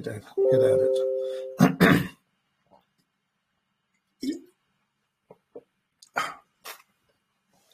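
An elderly man talks calmly over an online call.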